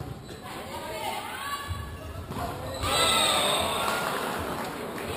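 Women players shout to each other across the court.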